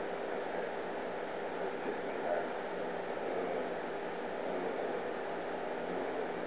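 An older man talks softly to a dog close by.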